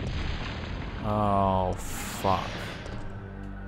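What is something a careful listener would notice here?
A large creature lets out a loud, wavering roar.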